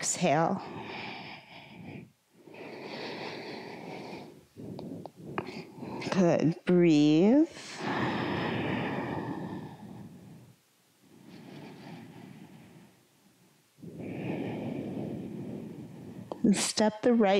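A woman breathes in and out slowly and deeply.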